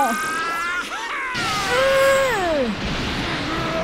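An energy blast roars and crackles.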